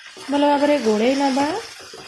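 A wooden spatula scrapes and stirs a thick paste in a metal pan.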